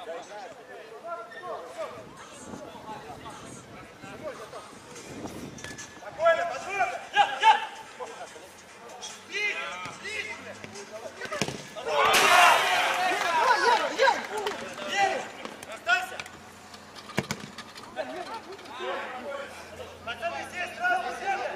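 Men shout and call out across an outdoor pitch.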